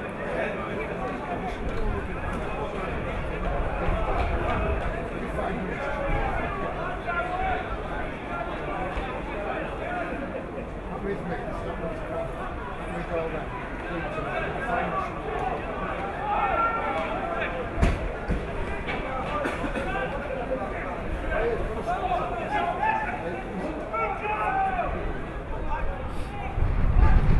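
Young men shout and call to each other outdoors across an open field.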